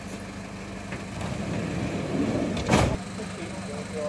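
A stretcher clatters as it is loaded into an ambulance.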